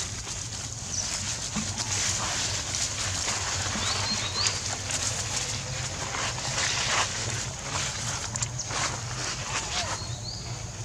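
Dry leaves rustle and crackle as small monkeys scamper over them.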